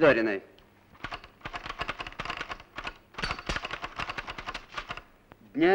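A typewriter clatters with rapid key strikes.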